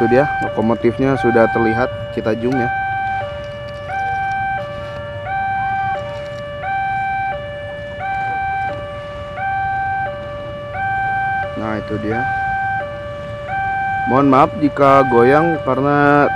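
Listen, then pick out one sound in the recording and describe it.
A level crossing warning bell rings steadily in a repeating two-tone pattern.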